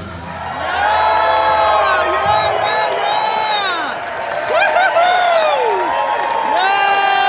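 Audience members whistle loudly and repeatedly.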